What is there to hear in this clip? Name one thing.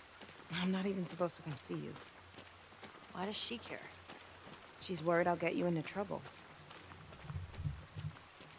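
Footsteps crunch softly through grass.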